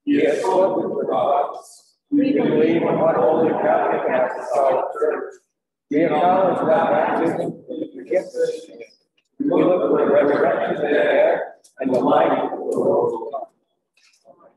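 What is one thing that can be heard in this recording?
A man chants aloud in a large echoing hall.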